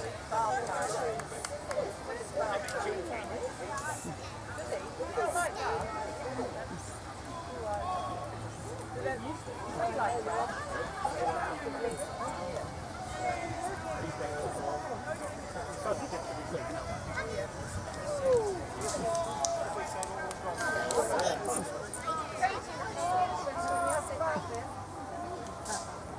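Men and women chat casually nearby outdoors.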